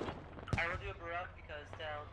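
A heavy explosion booms nearby.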